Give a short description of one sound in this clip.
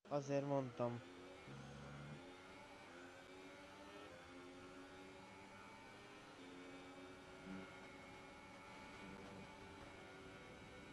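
A racing car engine whines steadily at high speed, shifting pitch as gears change.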